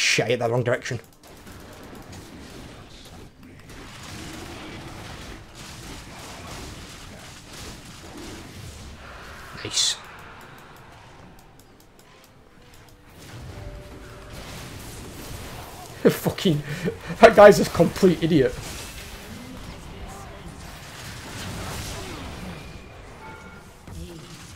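Fighting sound effects from a video game clash and whoosh.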